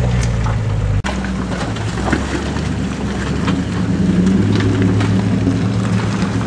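Branches scrape and snap against a vehicle.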